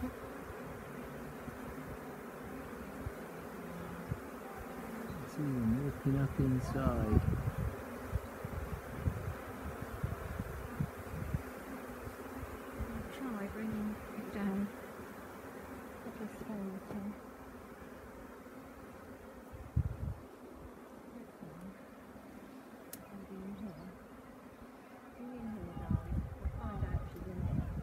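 A swarm of bees buzzes steadily close by.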